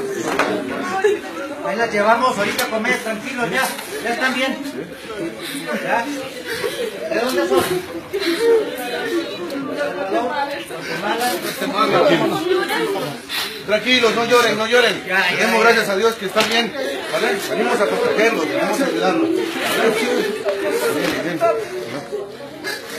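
A crowd of men, women and children talk over one another nearby.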